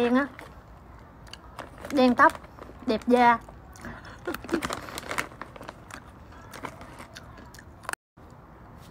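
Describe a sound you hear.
A plastic snack bag crinkles and rustles.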